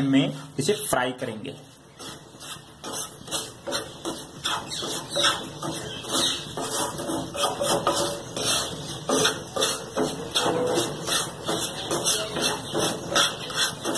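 A wooden spatula scrapes and stirs grains in a pan.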